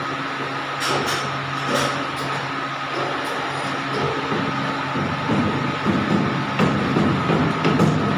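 A machine hums steadily as its rollers turn.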